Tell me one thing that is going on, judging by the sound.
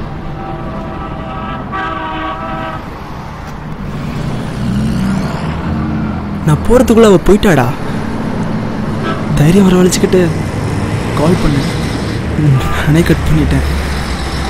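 Motorbikes and vehicles drive past with engines humming.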